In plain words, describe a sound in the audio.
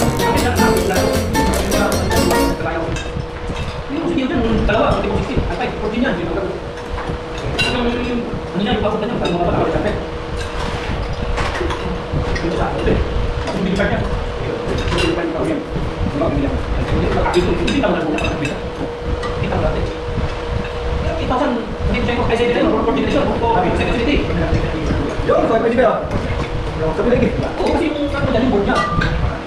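Several men and women chat and laugh nearby.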